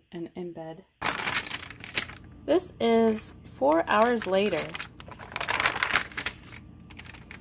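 Paper crinkles and rustles as hands handle it.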